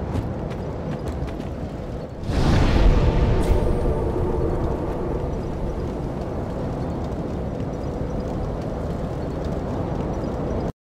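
A fire crackles and hisses steadily.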